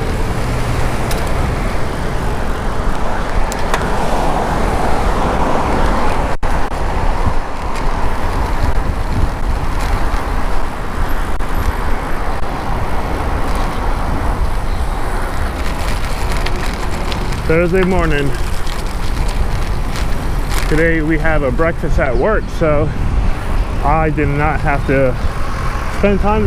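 Wind roars loudly past a moving rider.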